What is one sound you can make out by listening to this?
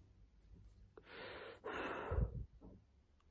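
A young woman blows out a long breath.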